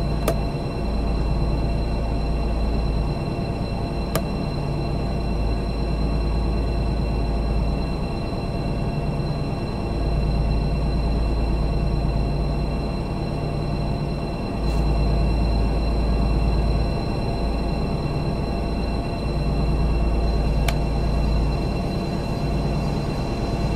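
A diesel locomotive engine idles with a deep, pulsing rumble.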